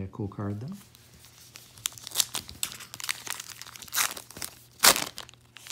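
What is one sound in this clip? A foil wrapper crinkles and rustles as it is handled and torn open.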